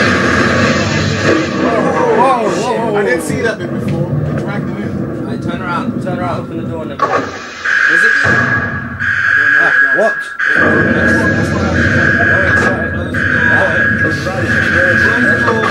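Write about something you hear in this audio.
Young men talk and shout excitedly close to a microphone.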